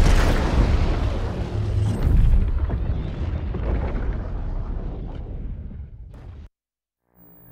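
A huge fire roars and rumbles.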